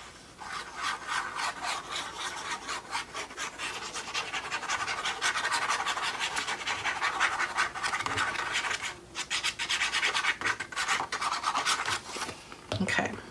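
A brush scrubs rapidly across a sheet of paper.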